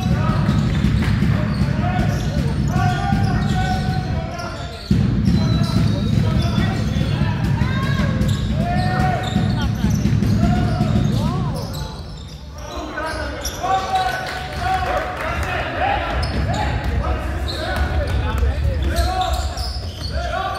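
Sneakers squeak sharply on a hardwood court in an echoing hall.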